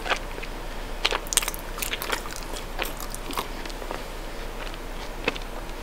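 A woman chews chocolate with wet mouth sounds close to the microphone.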